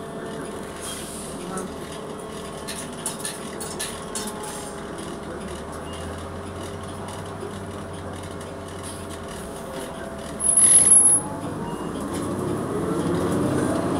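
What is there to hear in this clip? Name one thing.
Loose parts of the bus rattle as it moves.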